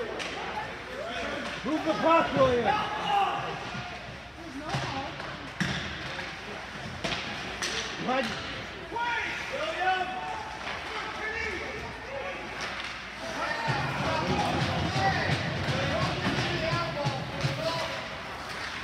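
Women chat nearby in a large echoing rink.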